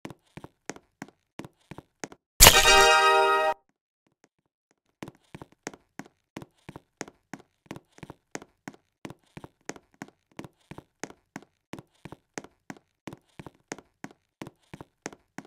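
Quick footsteps tap on a stone floor.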